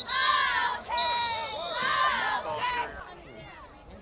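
Young boys shout and call out nearby.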